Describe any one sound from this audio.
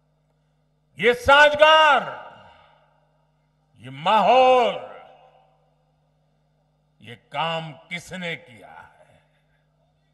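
An elderly man speaks forcefully into a microphone over loudspeakers, in short bursts with pauses.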